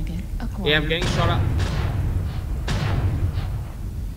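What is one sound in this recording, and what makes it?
A heavy weapon fires with loud bursts.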